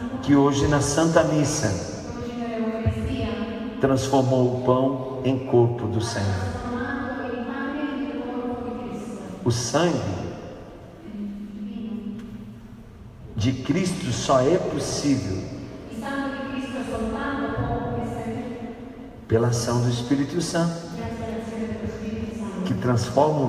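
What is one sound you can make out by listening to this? A man sings loudly into a microphone in a large echoing hall.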